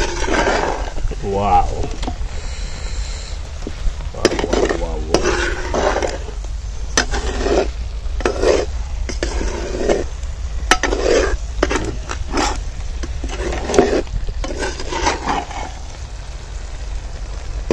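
Thick curry squelches as a ladle stirs it.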